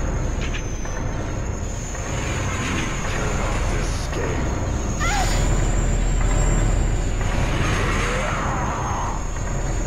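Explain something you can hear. Footsteps creak on wooden boards.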